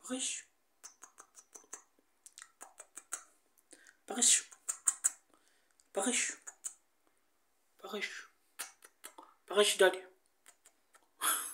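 A man makes kissing sounds close by.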